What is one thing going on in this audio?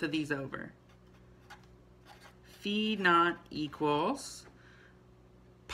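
A marker scratches softly on paper.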